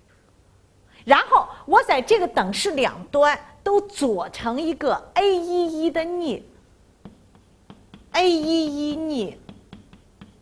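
A middle-aged woman speaks calmly and clearly, close to a microphone.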